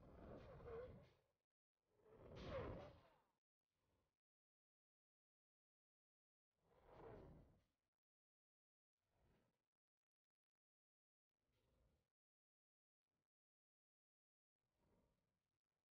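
Wind rushes and buffets against the microphone in gusts.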